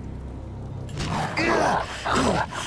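A creature snarls and roars up close.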